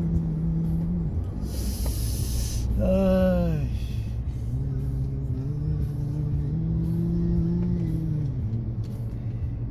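A car engine hums steadily while driving on a busy road.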